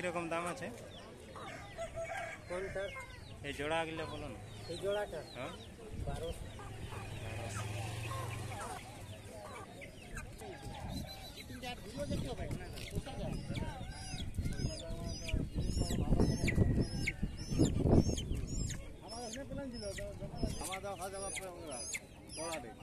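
Chickens cluck and squawk close by.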